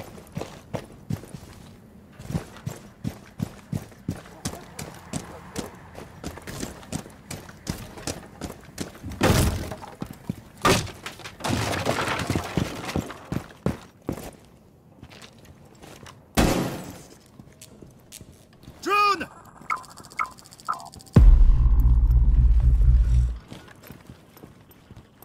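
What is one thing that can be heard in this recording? Footsteps tread steadily over hard ground and floors.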